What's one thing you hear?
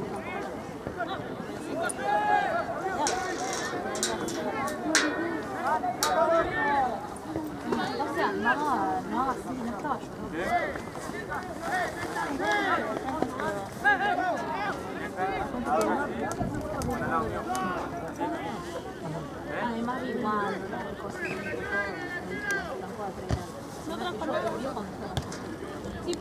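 A crowd of young men shouts and cheers loudly outdoors.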